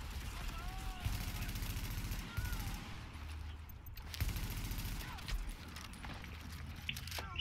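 Gunfire rattles in rapid bursts close by.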